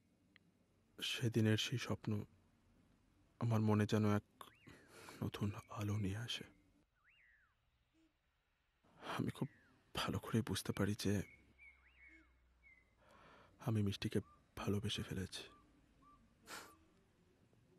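A young man speaks softly and closely, with pauses.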